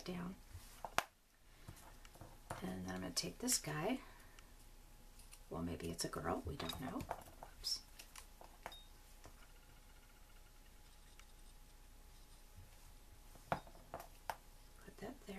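A small object is set down on a table with a light tap.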